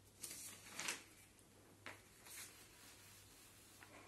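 A sheet of paper rustles.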